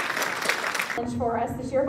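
A choir of young voices begins to sing.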